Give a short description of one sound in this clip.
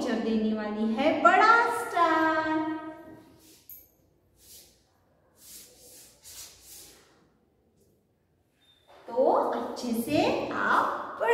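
A woman speaks clearly and with animation, close to the microphone.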